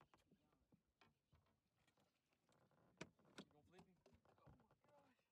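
Footsteps thud and knock on a hollow boat deck.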